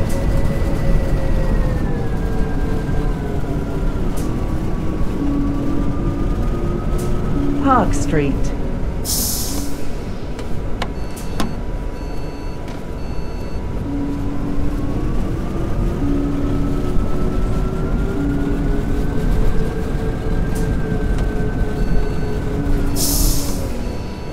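A bus engine drones, falling in pitch as the bus slows and rising again as it speeds up.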